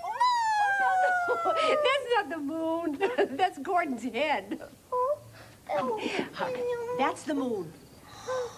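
A puppet character speaks in a high, squeaky voice.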